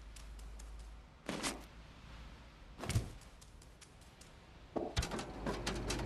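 A cat's paws thump softly as it lands from jumps.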